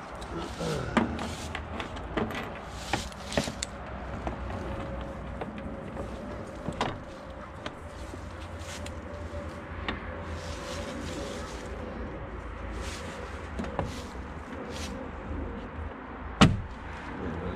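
A plastic door panel knocks and clatters against its metal frame.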